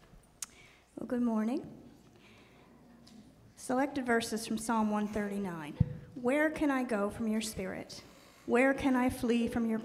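A middle-aged woman speaks calmly into a microphone, heard through loudspeakers in a large room.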